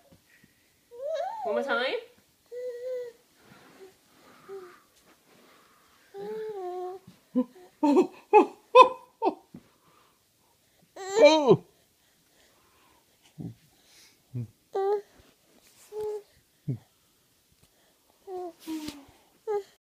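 A baby girl babbles and squeals close by.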